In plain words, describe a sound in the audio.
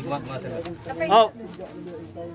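A man shouts loudly.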